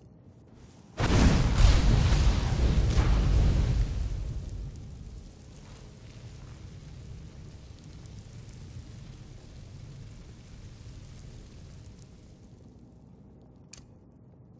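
A burst of flame whooshes and roars loudly, then crackles more quietly.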